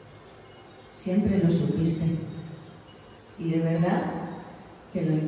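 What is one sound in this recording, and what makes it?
A young woman sings into a microphone in a large echoing hall.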